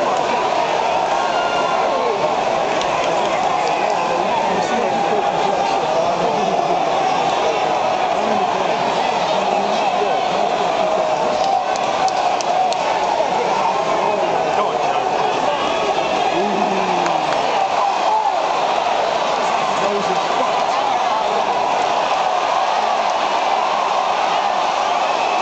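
A large crowd cheers and shouts steadily in a big echoing arena.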